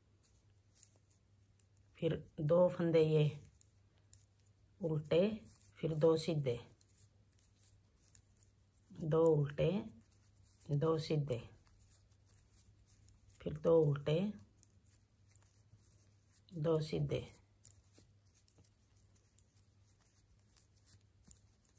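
Knitting needles click softly together.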